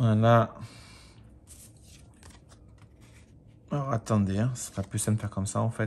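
A sheet of card stock rustles as it is handled.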